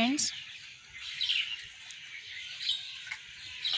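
Leaves rustle softly as a hand brushes a plant.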